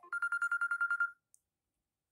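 A phone plays a fast trilling ring tone.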